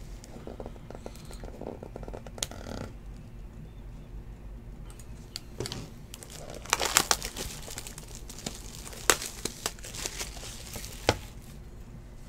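Foil card packs crinkle and rustle in a person's hands.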